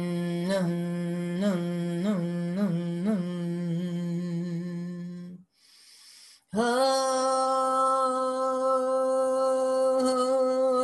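A woman sings long, held notes close to a microphone, with a short pause midway.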